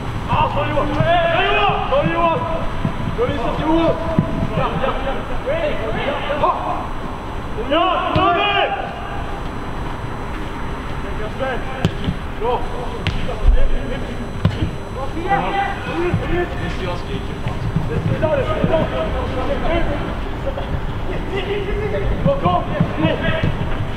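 Young men shout to each other far off across an open pitch outdoors.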